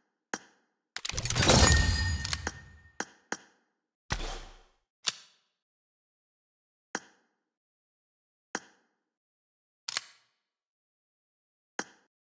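Game menu buttons give short clicks.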